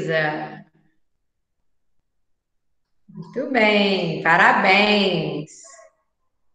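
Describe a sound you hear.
A young woman speaks warmly and clearly over an online call.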